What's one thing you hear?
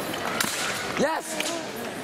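Blades clash with sharp metallic clicks.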